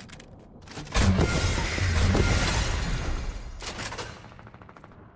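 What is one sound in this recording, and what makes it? A loud burst booms and rumbles.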